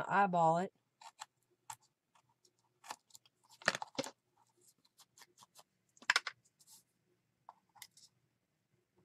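Paper rustles and taps softly under hands.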